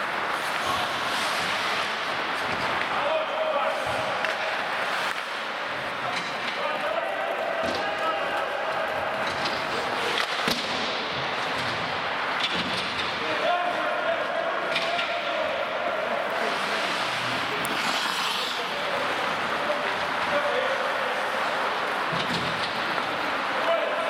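Hockey sticks clack against the puck and the ice.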